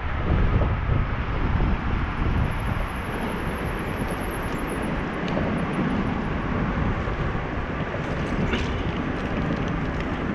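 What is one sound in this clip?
Wheels roll over pavement with a steady rumble.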